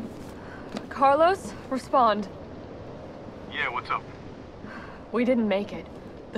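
A young woman speaks calmly into a radio.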